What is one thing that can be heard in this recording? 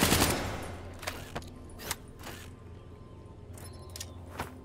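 An assault rifle is reloaded with metallic clicks.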